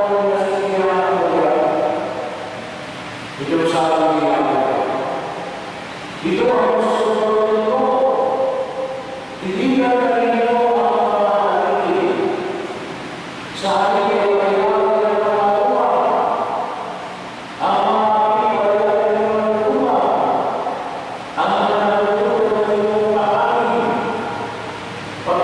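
A man chants in phrases through a microphone, echoing in a large room.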